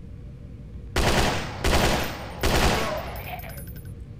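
Gunshots blast in quick succession.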